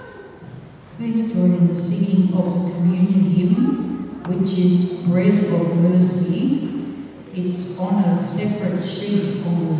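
A congregation sings together in a large echoing hall.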